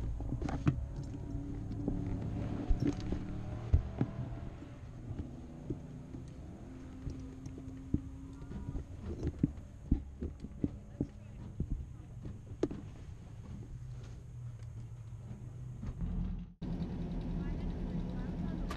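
Car engines idle nearby with a low steady rumble.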